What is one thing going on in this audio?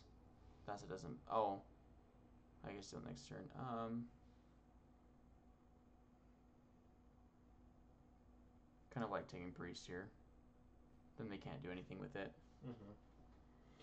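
A young man talks casually into a headset microphone, in bursts with pauses.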